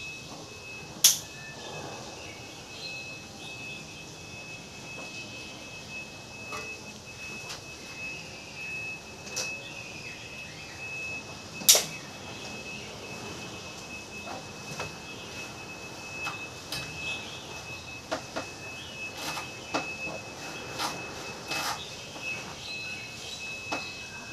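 Plastic parts of an electric fan click and knock as they are handled.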